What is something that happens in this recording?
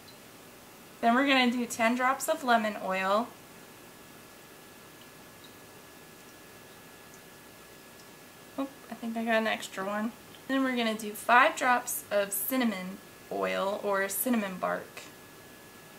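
A woman speaks calmly and close to the microphone.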